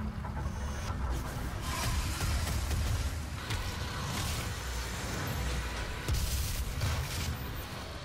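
A heavy gun fires in loud blasts.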